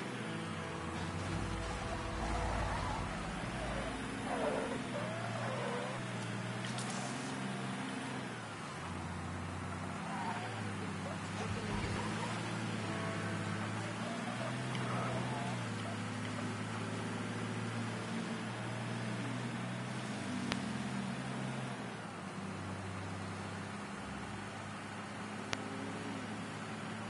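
A truck engine hums steadily, rising and falling as it drives.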